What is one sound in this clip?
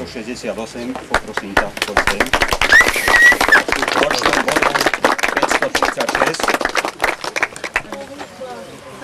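A crowd of children claps and applauds.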